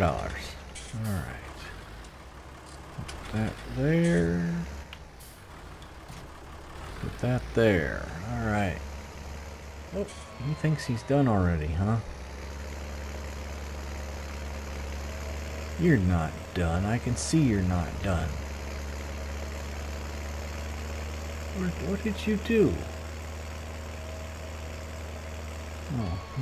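A tractor engine hums steadily as the tractor drives along.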